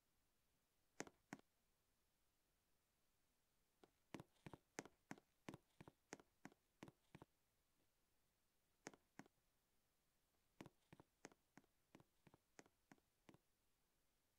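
Light footsteps tap in short quick bursts.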